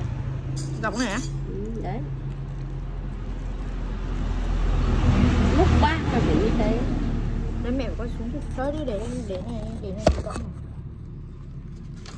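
Banana leaves rustle and crinkle as they are unwrapped.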